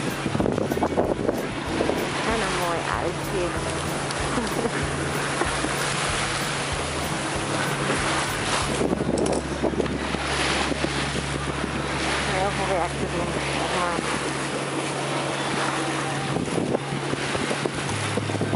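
Strong wind buffets outdoors.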